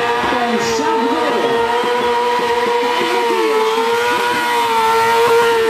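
A motorcycle engine screams at high revs, holding a steady pitch.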